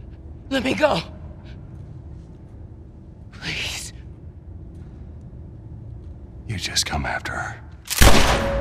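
A young woman pleads in a weak, frightened voice.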